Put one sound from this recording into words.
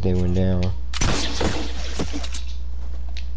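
A shot cracks against rock.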